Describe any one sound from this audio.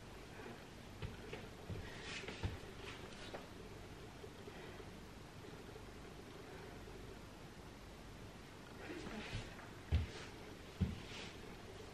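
Soft thumps and rustles sound as a body shifts on an exercise mat.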